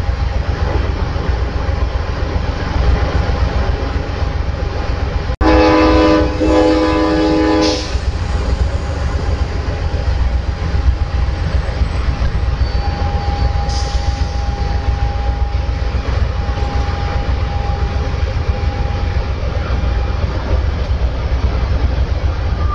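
A passenger train rolls slowly past with a low, steady rumble.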